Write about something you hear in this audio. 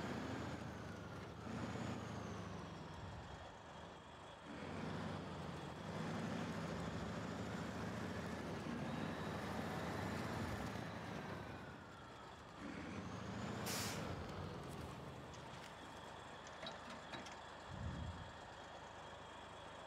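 Tyres crunch over rough gravel.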